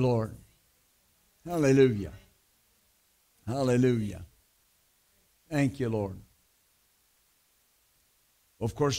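A middle-aged man speaks slowly and deliberately into a microphone, with long pauses between phrases.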